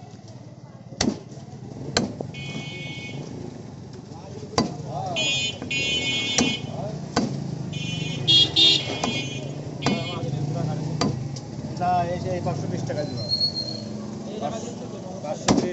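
A cleaver chops meat on a wooden block with sharp thuds.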